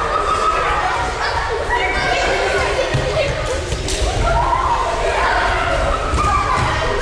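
A crowd of children chatters loudly in a large echoing hall.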